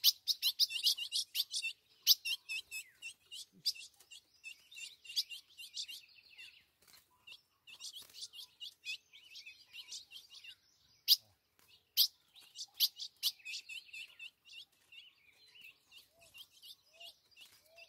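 Many small songbirds chirp and twitter rapidly outdoors.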